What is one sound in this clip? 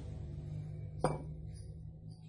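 A glass bottle clinks against a metal rod.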